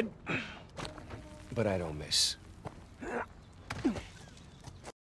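Another man answers calmly.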